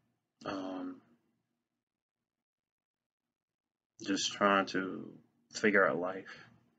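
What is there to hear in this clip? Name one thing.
A man speaks calmly and close up, with short pauses.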